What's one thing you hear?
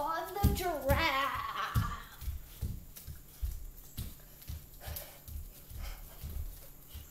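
Children's feet thump on a wooden floor.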